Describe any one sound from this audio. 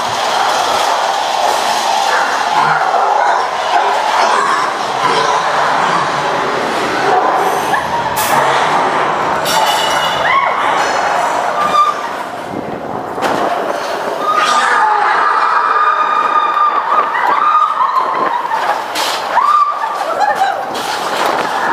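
A ride car rumbles and rattles along a track.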